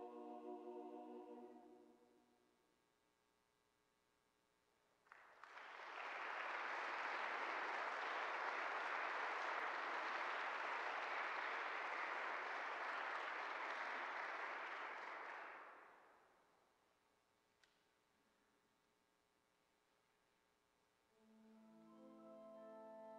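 A choir sings sustained notes in a reverberant hall.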